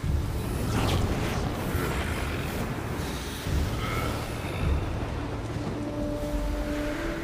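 Steam hisses in a rushing burst.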